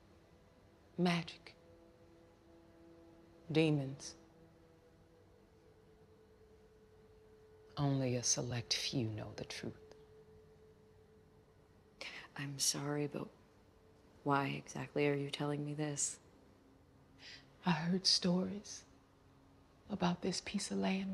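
An older woman speaks calmly and slowly.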